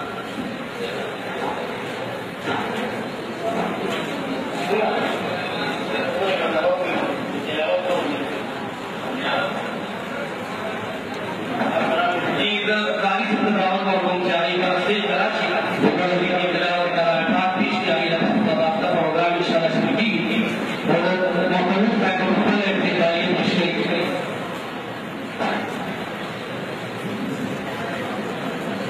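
A large crowd of men murmurs and chants together in a large echoing hall.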